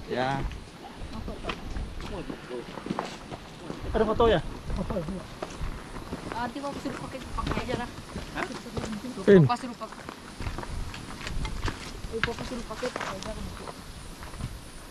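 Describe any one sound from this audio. Several people chat and laugh nearby outdoors.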